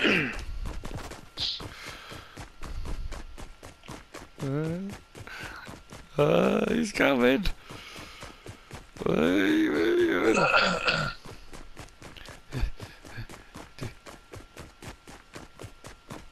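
Footsteps patter quickly and steadily on a hard surface.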